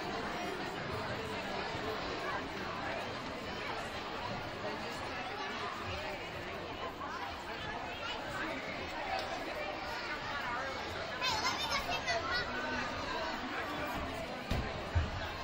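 A crowd of children and adults chatters steadily in a large echoing gym.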